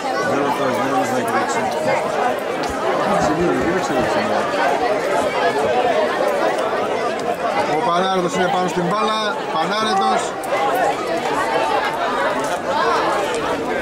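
Men shout and call out across an open football pitch.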